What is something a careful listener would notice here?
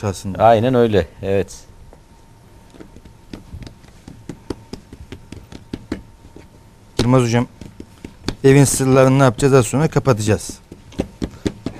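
Hands press and pat soft dough on a counter.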